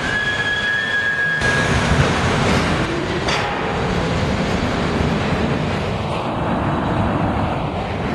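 A subway train rumbles and clatters loudly as it pulls out of an echoing underground station.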